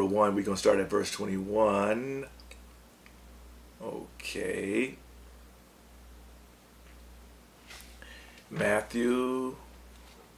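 A middle-aged man speaks slowly and calmly into a close microphone, with long pauses.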